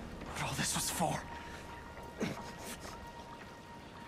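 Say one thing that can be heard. A young man asks a question.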